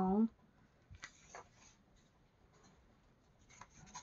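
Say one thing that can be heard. A page of a book turns with a soft paper rustle.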